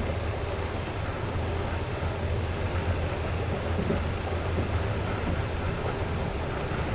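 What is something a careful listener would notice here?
A train rumbles steadily along the rails from inside a carriage.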